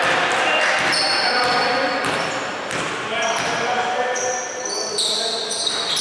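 Sneakers squeak sharply on a court in an echoing hall.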